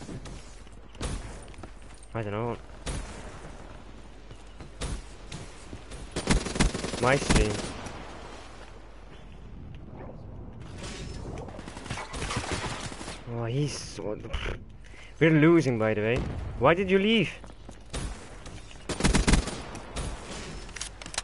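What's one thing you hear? Gunshots crack in short, sharp bursts.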